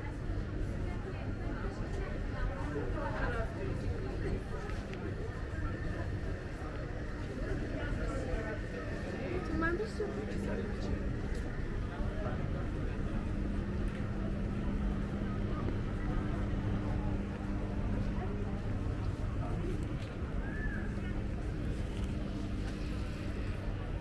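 A crowd of people murmurs and chatters outdoors.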